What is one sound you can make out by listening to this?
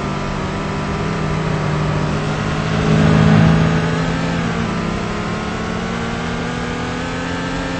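A car engine hums steadily at speed, rising in pitch as it accelerates and then easing off.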